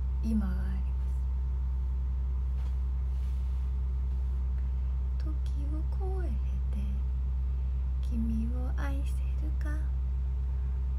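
A young woman speaks softly and calmly close to a microphone.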